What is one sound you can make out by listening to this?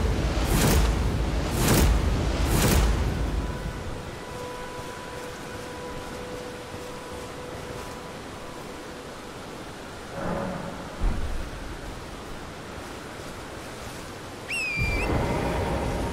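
Footsteps run through tall grass.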